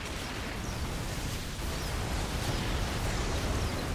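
Explosions boom in a game battle.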